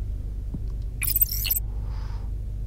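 A bright electronic whoosh sounds as a menu opens.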